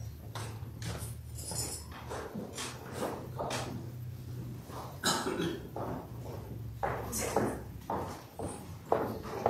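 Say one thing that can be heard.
A man speaks quietly in a room with some echo.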